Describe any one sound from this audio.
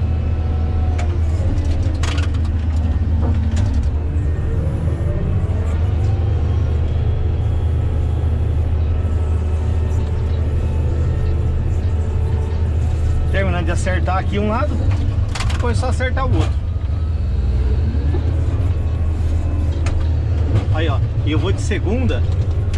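A heavy diesel engine rumbles steadily from inside a machine's cab.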